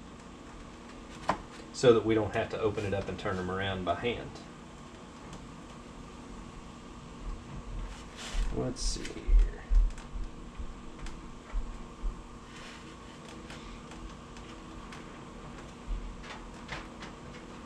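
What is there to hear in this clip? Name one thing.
Eggs clink lightly against a plastic tray.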